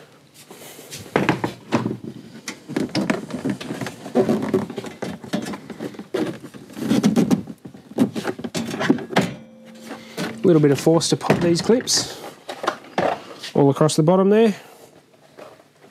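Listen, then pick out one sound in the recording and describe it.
A plastic trim panel clicks and rattles as it is pried loose.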